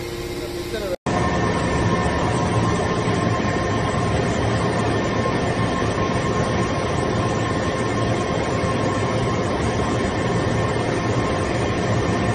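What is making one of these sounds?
A hydraulic press machine hums and whirs loudly and steadily.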